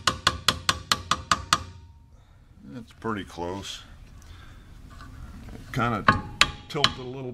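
A hammer strikes metal in quick, ringing blows.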